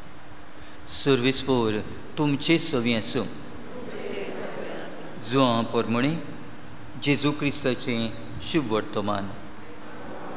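An elderly man speaks with animation into a microphone, in short bursts.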